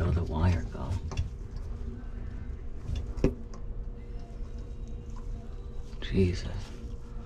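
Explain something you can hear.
Wires rustle and tick against a metal rack as they are handled.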